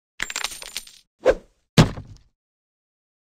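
A magic spell bursts with a shimmering whoosh.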